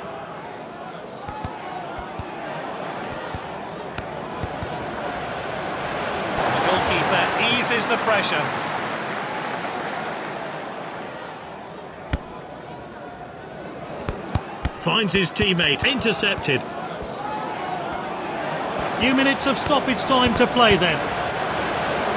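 A stadium crowd roars steadily, swelling at times.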